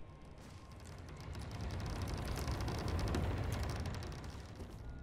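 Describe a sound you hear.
A heavy wooden door slowly creaks and grinds open.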